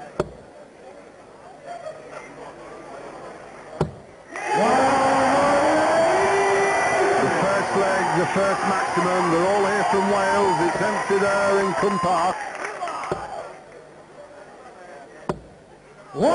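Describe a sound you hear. Darts thud sharply into a dartboard.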